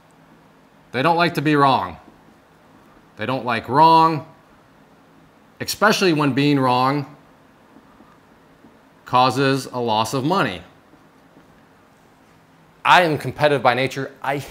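A man speaks calmly and clearly into a nearby microphone, in short phrases with pauses.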